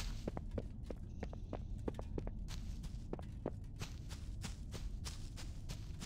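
Footsteps patter quickly over soft ground.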